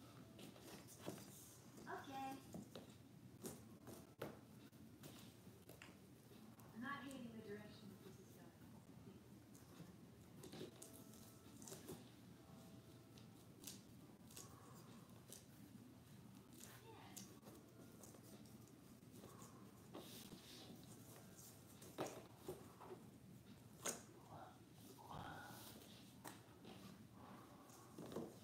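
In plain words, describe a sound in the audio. Small pieces tap and rustle on a floor.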